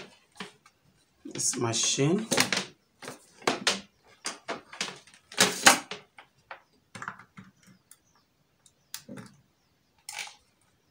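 A plastic drill body clicks and knocks as hands handle it.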